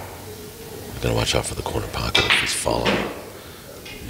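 A cue stick sharply strikes a billiard ball.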